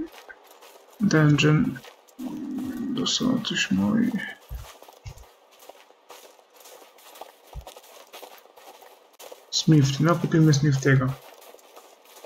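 A man talks close to a microphone in short bursts.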